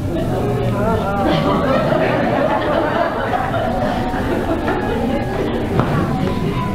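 An audience murmurs quietly.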